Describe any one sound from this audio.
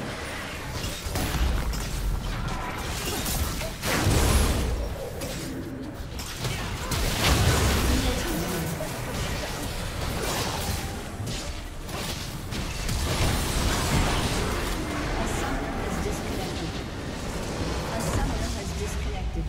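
Game spells and attacks crackle, clash and explode in a busy fight.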